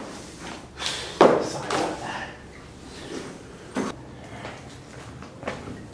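A bag rustles and zips as things are packed.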